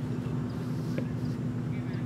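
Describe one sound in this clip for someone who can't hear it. A cricket bat strikes a leather ball.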